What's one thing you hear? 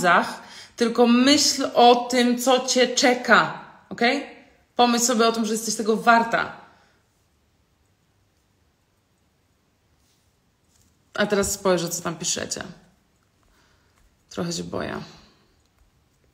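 A young woman speaks with animation close to the microphone, pausing now and then.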